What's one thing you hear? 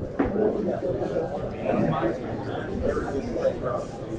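A middle-aged man speaks clearly to a group in a room.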